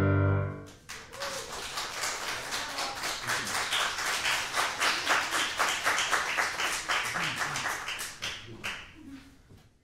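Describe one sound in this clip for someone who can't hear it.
An audience claps in steady applause in a room with some echo.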